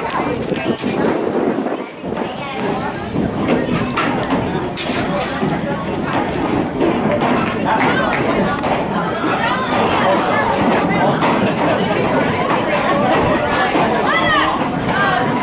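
A crowd of spectators nearby talks and cheers loudly, growing more excited.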